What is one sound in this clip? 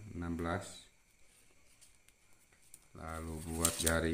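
A plastic ruler slides across paper.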